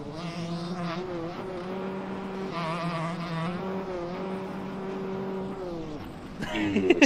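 A motorcycle engine drones and revs steadily.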